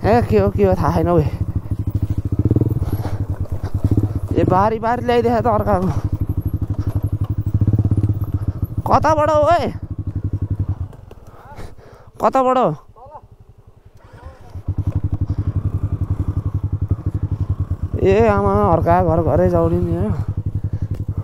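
A motorcycle engine revs up and down in short bursts.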